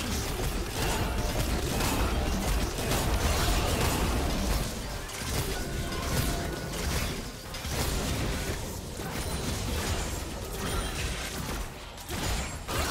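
Spell blasts crackle and boom in a busy video game battle.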